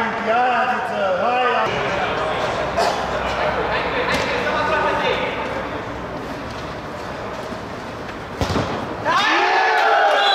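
A ball is kicked sharply on an indoor pitch.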